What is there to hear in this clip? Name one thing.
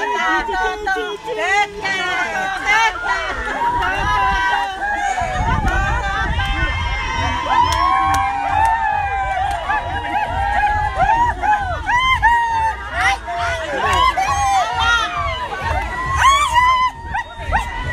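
A crowd of women chatter and call out loudly close by.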